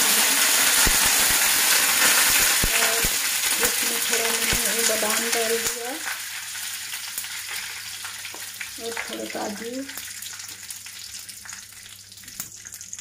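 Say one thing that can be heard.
Food sizzles loudly in hot oil in a pan.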